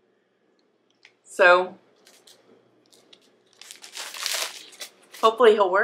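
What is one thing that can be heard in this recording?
Plastic packaging crinkles in a woman's hands.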